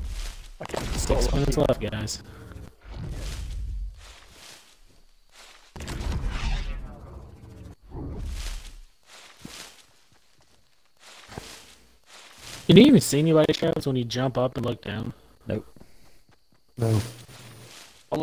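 Footsteps rustle through tall dry crops.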